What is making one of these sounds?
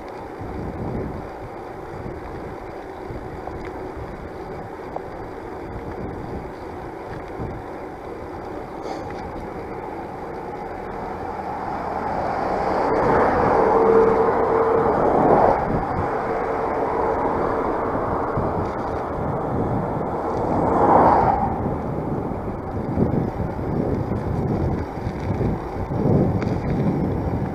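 Wind rumbles steadily against a microphone.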